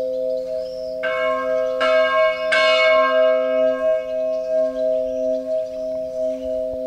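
A church bell strikes loudly and rings on, slowly fading.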